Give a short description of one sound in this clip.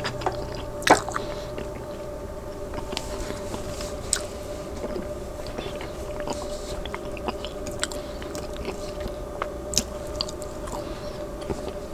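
A man chews food close to a microphone.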